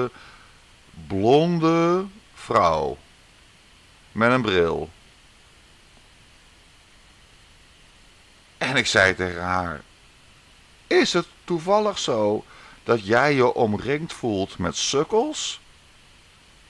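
A woman speaks softly and close by, with pauses.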